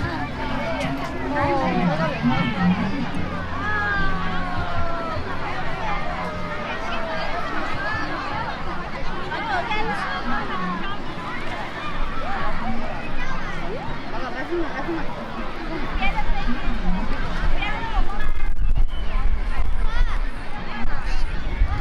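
Children shout and squeal nearby.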